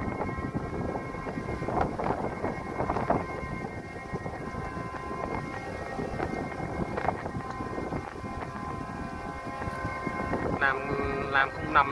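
Wind blows and buffets outdoors.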